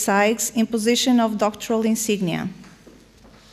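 A woman speaks clearly into a microphone, heard through loudspeakers in a large hall.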